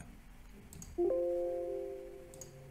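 A computer alert chime rings once and slowly fades.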